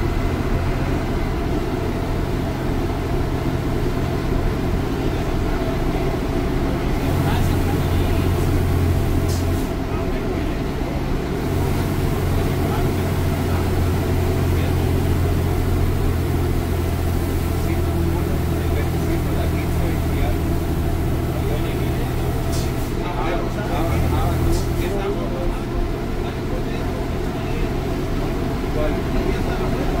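Loose parts of the bus rattle and clatter over bumps.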